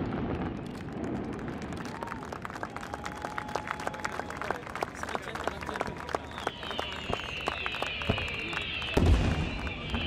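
Crackling fireworks pop and sizzle far off.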